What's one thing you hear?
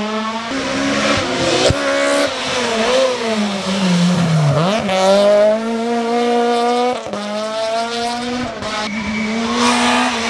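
A rally car engine revs hard and roars past close by.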